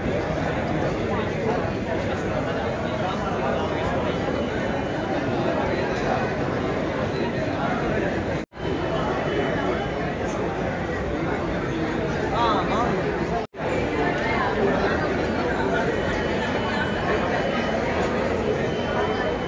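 A crowd chatters loudly in an echoing hall.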